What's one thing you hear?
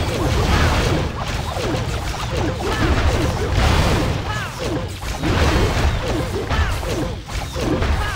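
Game battle noises and explosions rumble steadily.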